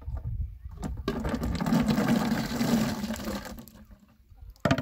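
Water pours from a pot and splashes onto a vegetable.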